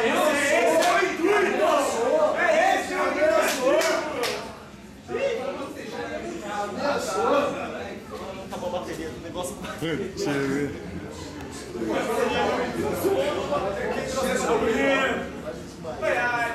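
A crowd of men talks and murmurs nearby.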